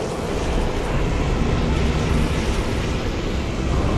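A magic beam crackles and hisses.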